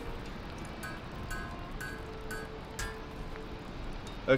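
Metal clinks and rings as an item is forged.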